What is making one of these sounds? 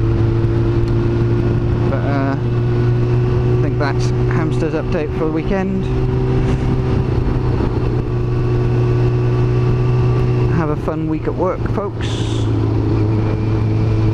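A motorcycle engine hums steadily as it rides along a road.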